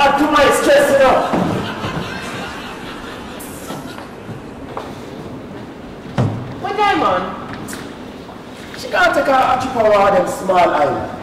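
A man speaks loudly with animation in a room with slight echo.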